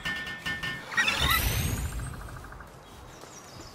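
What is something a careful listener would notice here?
A bright chime rings out with a low thud.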